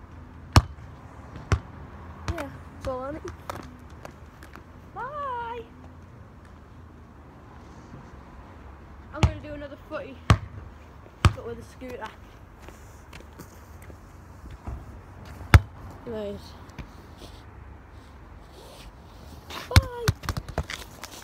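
A ball thumps sharply as it is kicked and bounces on tarmac.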